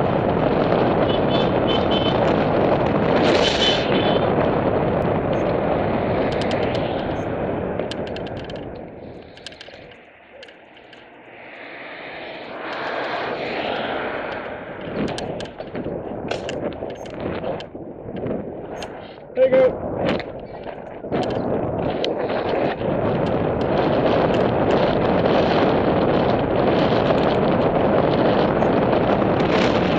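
Wind rushes and buffets loudly.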